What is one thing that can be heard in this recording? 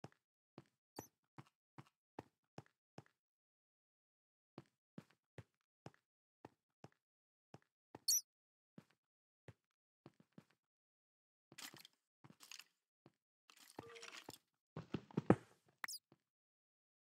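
A bat squeaks in short high bursts.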